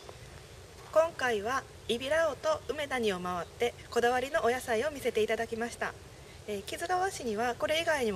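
A young woman speaks clearly and brightly into a microphone.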